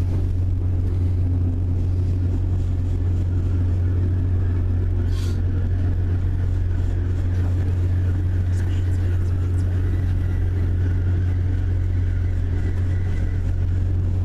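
A train rumbles along the track with a steady low hum.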